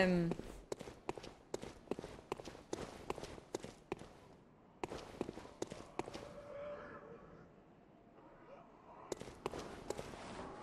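Footsteps clack on stone at a steady pace.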